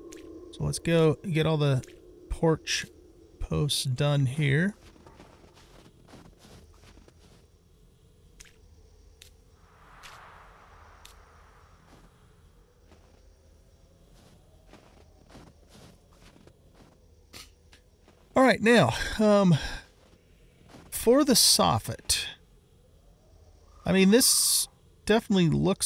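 A man talks with animation through a headset microphone.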